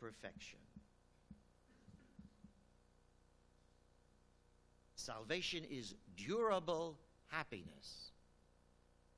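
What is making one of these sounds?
An elderly man speaks into a microphone, reading out calmly.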